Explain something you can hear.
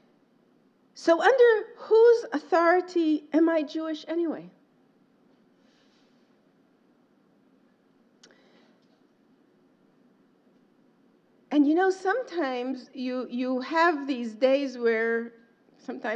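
A woman speaks calmly and close into a microphone, with pauses.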